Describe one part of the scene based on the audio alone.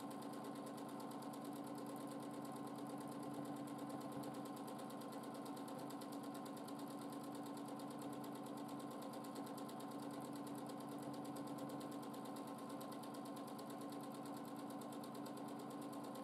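A sewing machine runs steadily with a fast, even whirring clatter.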